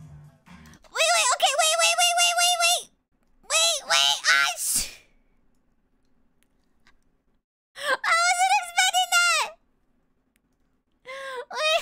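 A young woman speaks in a high, animated voice close to a microphone.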